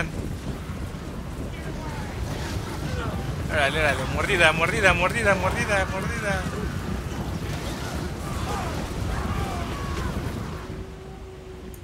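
A low, steady battle rumble fills the air.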